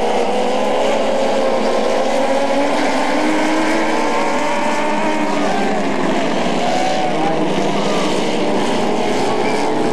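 Dwarf race car engines roar as the cars race by.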